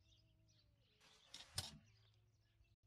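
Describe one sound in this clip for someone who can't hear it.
A wooden hanger scrapes and clacks on a metal rail as a coat is lifted off.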